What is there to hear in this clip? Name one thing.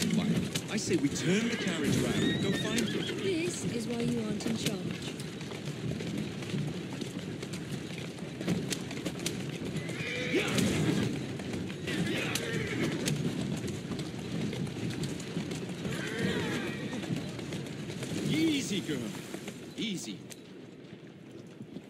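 Carriage wheels rattle over cobblestones.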